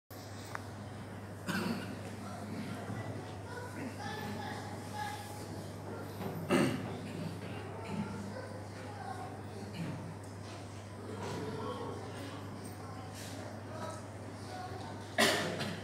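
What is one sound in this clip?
An elderly man speaks calmly through a microphone and loudspeakers in an echoing hall.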